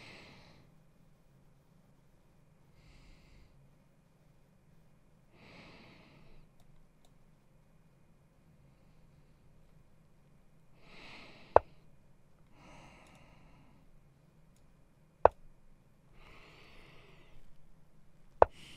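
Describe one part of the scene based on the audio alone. A man speaks softly into a headset microphone in short bursts.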